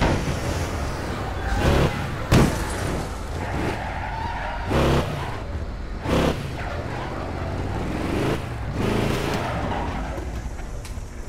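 A car engine revs as a car drives along.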